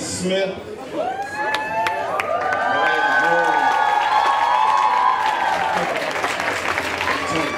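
A group of women and men sings together, loud and close.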